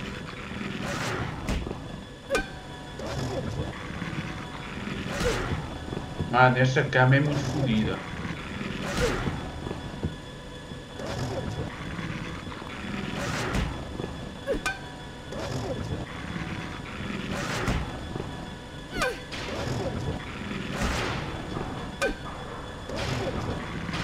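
A metal pipe strikes a creature with heavy, repeated thuds.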